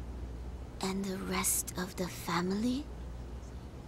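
An elderly woman speaks in a tearful, shaky voice.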